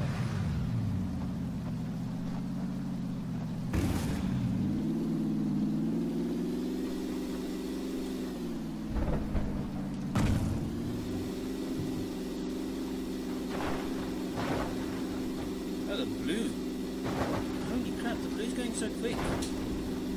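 Tyres bump and rumble over rough ground.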